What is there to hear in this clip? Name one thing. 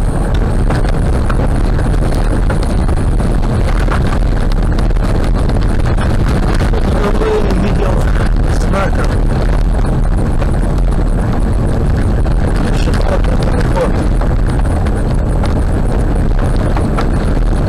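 Gravel and stones rattle under the tyres.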